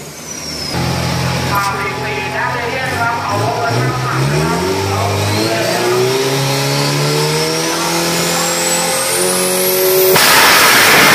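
A race truck engine idles loudly and revs up in rising bursts.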